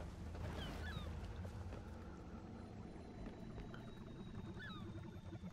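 A bird chirps briefly now and then.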